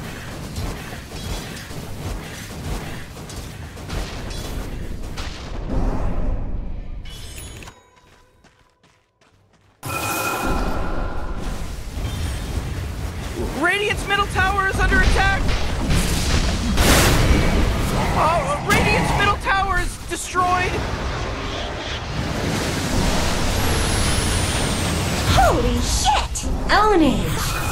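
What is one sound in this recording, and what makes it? Spell blasts and weapon clashes crackle and thud in a busy fight.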